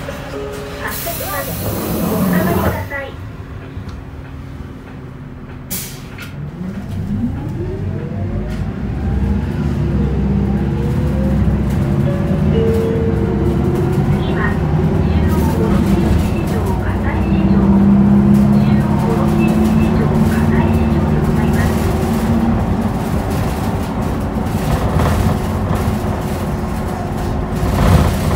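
A bus engine rumbles low and revs up as the bus picks up speed.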